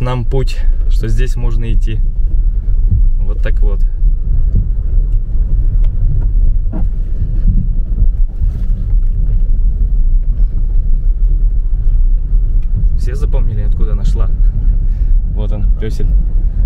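Water swishes and splashes under tyres.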